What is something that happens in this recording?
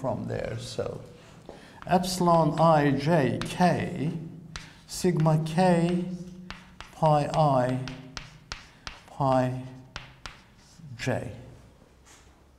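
An elderly man speaks calmly, echoing slightly in a room.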